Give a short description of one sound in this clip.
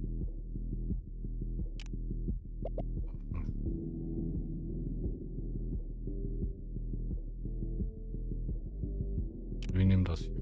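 Low, pulsing electronic music plays steadily.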